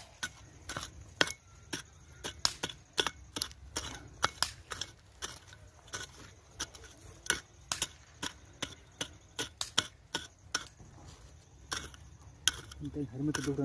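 A small hand hoe chops into dry soil again and again.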